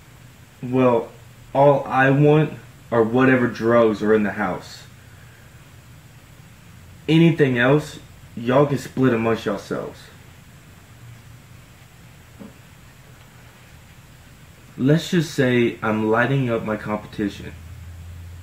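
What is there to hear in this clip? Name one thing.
A young man talks close by, calmly and in bursts.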